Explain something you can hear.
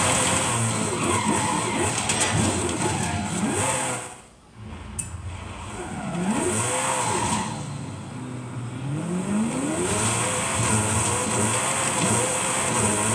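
A racing car engine revs and roars through a loudspeaker, rising and falling in pitch.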